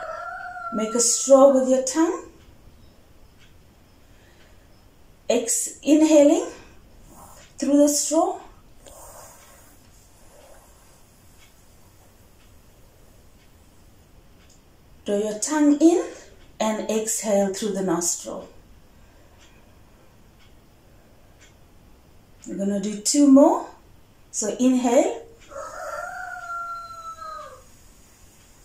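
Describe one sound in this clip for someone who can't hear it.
A woman speaks calmly in short phrases with pauses, close by.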